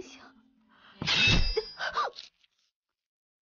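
A young woman cries out in anguish.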